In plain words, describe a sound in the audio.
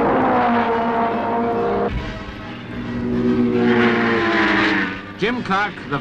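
A racing car engine roars past at high speed.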